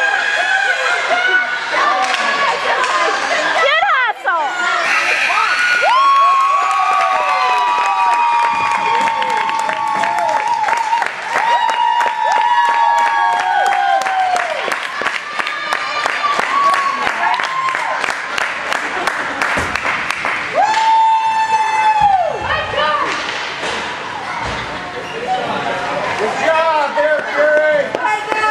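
A crowd cheers and shouts loudly in a large echoing rink.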